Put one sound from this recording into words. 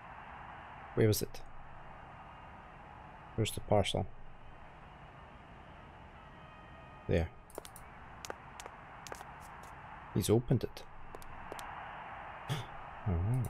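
A man talks in short bursts, close to a microphone.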